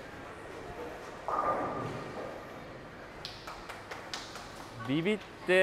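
A bowling ball rolls and rumbles down a lane.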